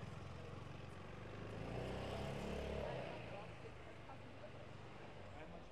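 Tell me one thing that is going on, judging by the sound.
Distant voices murmur along a busy street.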